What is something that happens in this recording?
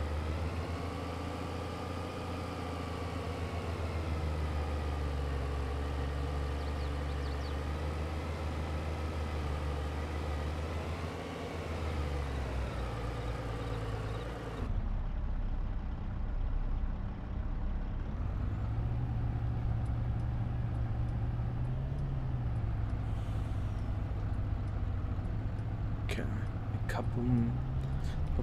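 A heavy truck's diesel engine idles with a deep rumble, then pulls away and revs.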